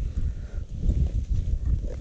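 A shovel scrapes into dry soil.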